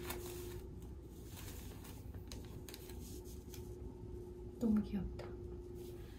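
Soft fabric rustles as it is handled.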